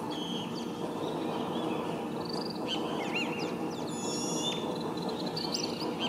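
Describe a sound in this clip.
A bee buzzes its wings steadily, close by.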